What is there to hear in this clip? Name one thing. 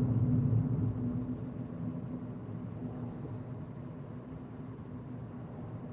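A bus passes close by.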